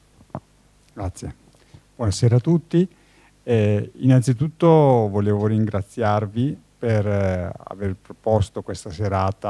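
An elderly man speaks calmly through a microphone in a large hall.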